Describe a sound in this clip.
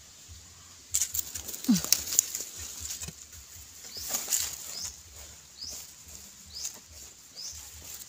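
A tool digs into dry earth with scraping thuds.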